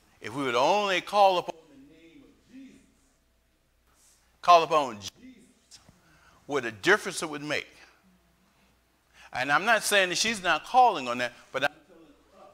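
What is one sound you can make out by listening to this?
A man speaks with animation into a microphone, his voice ringing slightly in a large room, in phrases with pauses.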